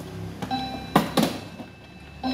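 A glass clock door clicks shut.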